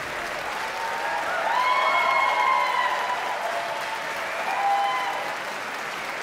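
Audience members cheer and whoop.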